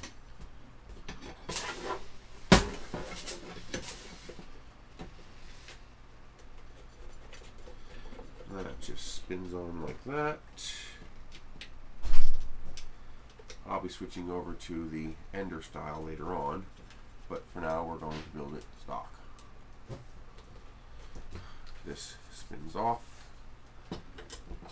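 Small plastic parts click and clatter as a man handles them.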